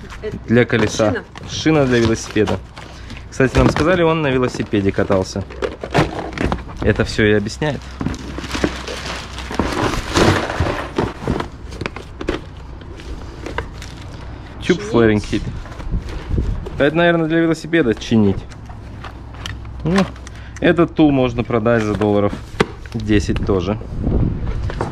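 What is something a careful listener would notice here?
Plastic and cardboard items rustle and clatter as they are handled.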